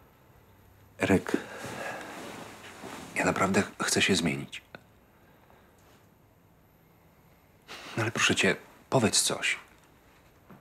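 A man speaks quietly and hesitantly nearby.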